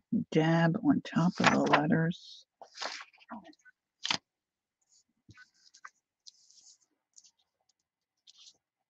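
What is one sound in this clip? Paper rustles as hands handle and rub a sheet.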